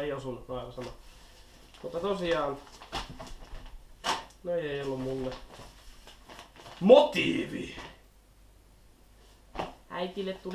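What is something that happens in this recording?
Paper sheets rustle and flap as they are handled.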